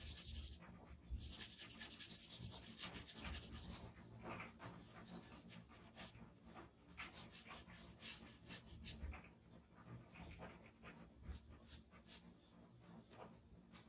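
A cotton swab dabs on an ink pad.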